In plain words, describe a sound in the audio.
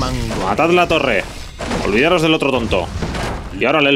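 Magic blasts burst and crackle in a battle.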